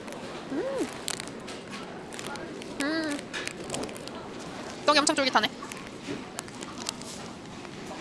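A young woman chews food softly.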